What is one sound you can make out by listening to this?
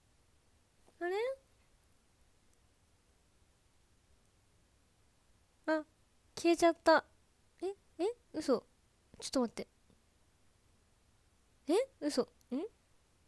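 A young woman speaks in short, playful bursts close to a microphone.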